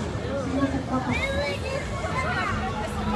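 Young people shout and call out nearby.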